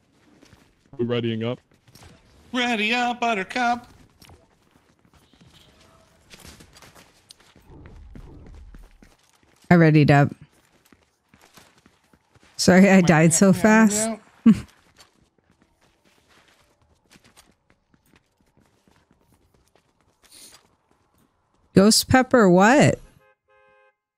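A young woman talks with animation close to a microphone, in short bursts.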